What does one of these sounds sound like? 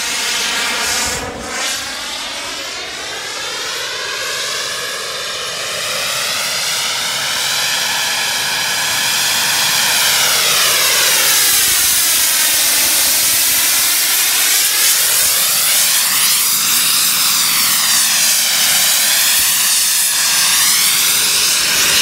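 A model jet's turbine whines loudly, its pitch rising and falling as it flies past and hovers.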